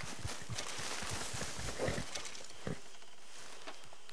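A horse snorts.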